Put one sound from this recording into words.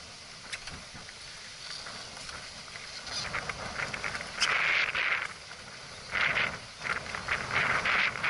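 Wind gusts and rushes past outdoors.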